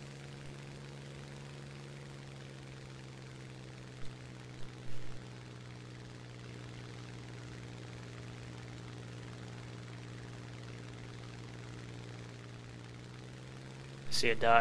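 A piston-engined fighter plane's engine drones steadily in flight.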